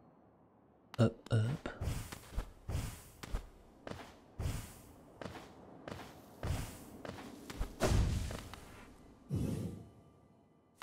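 Light quick footsteps patter across a hard floor.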